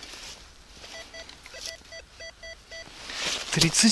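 A metal detector beeps softly in short repeated tones.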